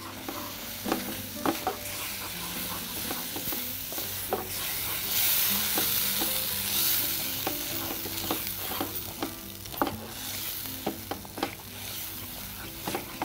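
A wooden spatula scrapes and knocks against a metal pan.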